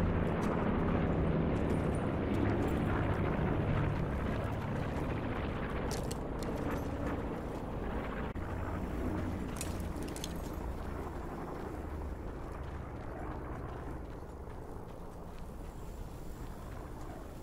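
Footsteps crunch on dry dirt and grass.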